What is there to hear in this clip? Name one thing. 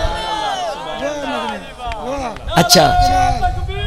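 A crowd of men cheers and calls out.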